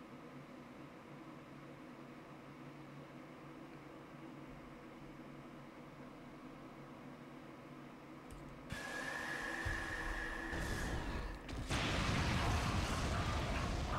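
Game music plays softly.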